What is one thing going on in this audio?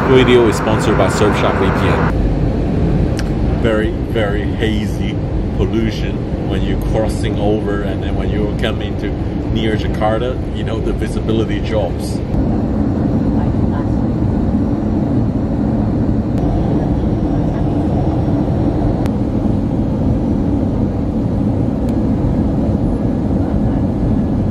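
A jet engine roars steadily inside an aircraft cabin.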